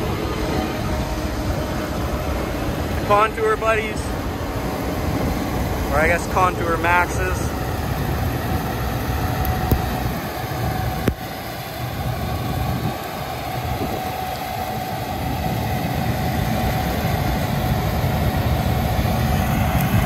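A diesel combine harvester rumbles as it harvests a field.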